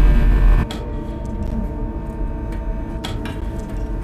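Steam hisses from a vent.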